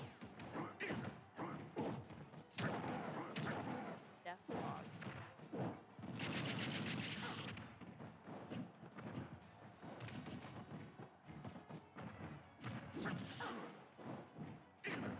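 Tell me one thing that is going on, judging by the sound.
Punches and kicks in a fighting video game land with sharp thuds and cracks.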